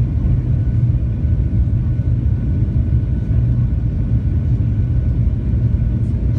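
A jet engine drones steadily in a deep, low roar inside an aircraft cabin.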